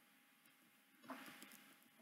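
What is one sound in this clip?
A wooden chest lid thuds shut.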